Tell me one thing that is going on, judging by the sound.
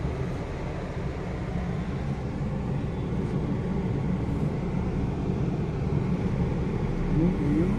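A moving car rumbles on the road, heard from inside the cabin.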